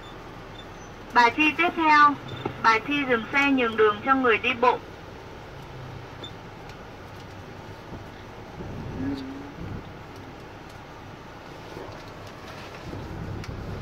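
A vehicle engine hums steadily from inside.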